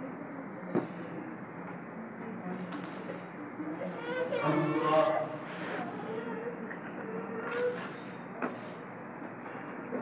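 A plastic bag crinkles close by.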